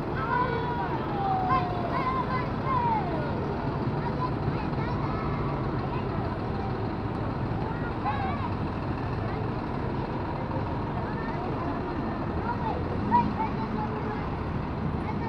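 A truck engine rumbles steadily nearby.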